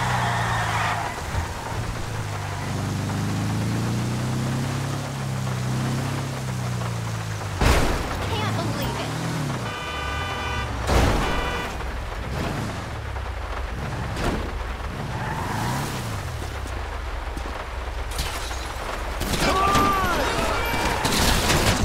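A car engine drones and revs as the car drives.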